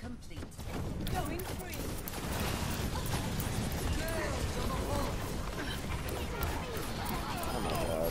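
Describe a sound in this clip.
Energy beams hum and crackle as they fire in bursts.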